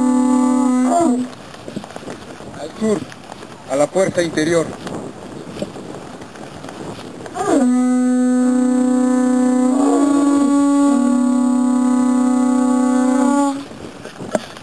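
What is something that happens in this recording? A conch shell is blown in long, loud, steady blasts.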